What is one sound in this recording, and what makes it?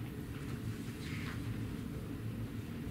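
A page of sheet music rustles.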